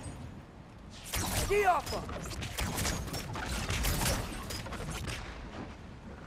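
An ice arrow shatters with an icy crack.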